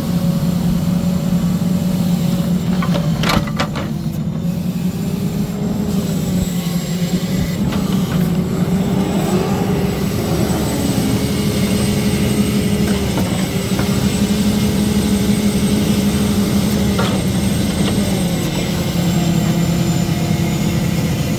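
A diesel engine drones steadily close by.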